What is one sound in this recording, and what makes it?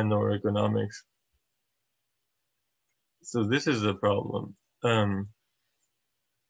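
A young man speaks calmly and clearly into a close microphone, in short phrases.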